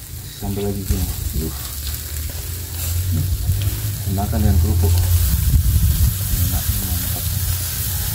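A spoon scrapes food onto a plate.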